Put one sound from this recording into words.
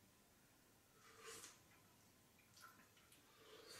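A man slurps from a cup.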